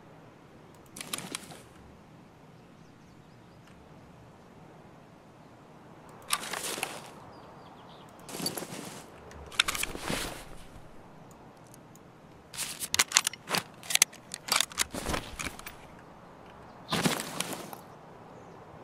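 A rifle rattles and clicks as it is raised and lowered.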